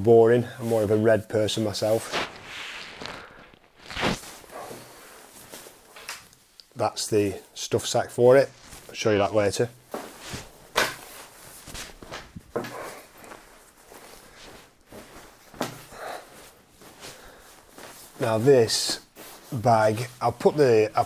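A man talks calmly to the microphone nearby.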